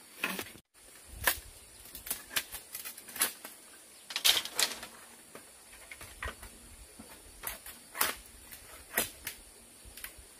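Bamboo poles knock and thud against the ground.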